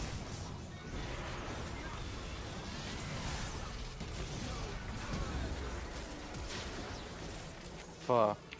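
Game spell effects crackle and whoosh during a fight.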